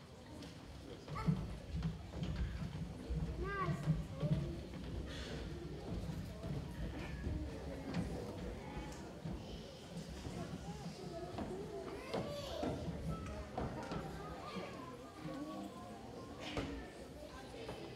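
Young children's feet shuffle softly.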